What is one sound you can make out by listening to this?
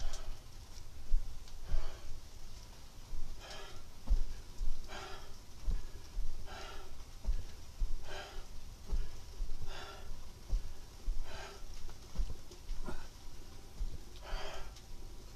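Soft dull thumps land on a padded floor.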